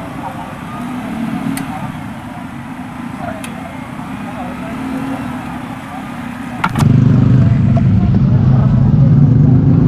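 Motorcycle engines rumble and idle nearby.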